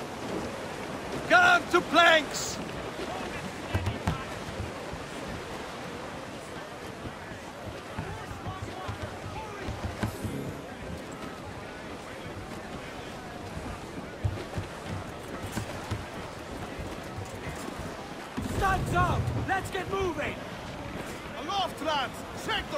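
Waves wash and splash against a sailing ship's hull.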